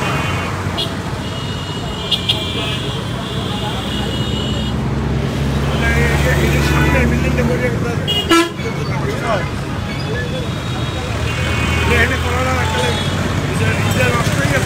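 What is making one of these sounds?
Traffic rumbles along a busy street outdoors.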